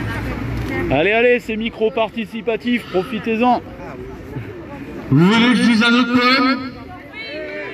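A man sings loudly through a microphone and loudspeaker outdoors.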